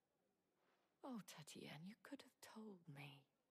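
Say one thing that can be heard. A young woman speaks with feeling, close and clear.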